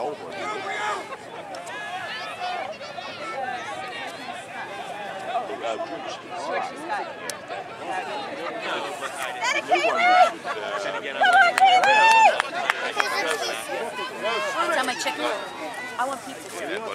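Young children shout and cheer excitedly outdoors, with some shrill high-pitched cries.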